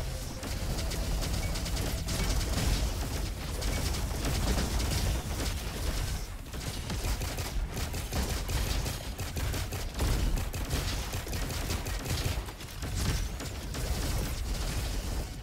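A buzzing energy beam weapon fires in crackling bursts.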